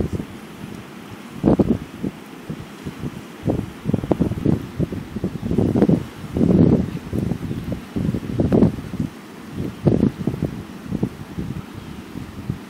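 A river rushes loudly outdoors.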